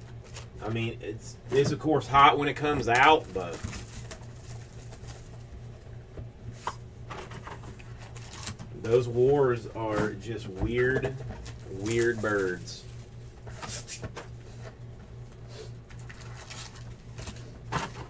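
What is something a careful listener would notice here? Card packs rustle and crinkle.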